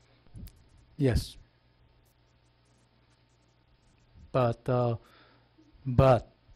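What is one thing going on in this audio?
A woman speaks in short bursts through a microphone.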